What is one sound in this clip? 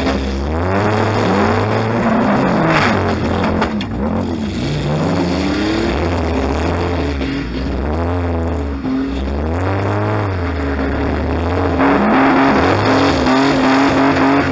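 A car engine revs up and down loudly, heard from inside the car.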